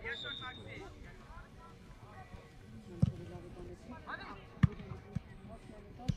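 Young men shout and cheer outdoors at a distance.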